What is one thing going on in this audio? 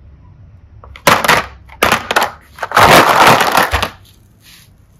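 Small plastic toy cases rattle and clatter against each other.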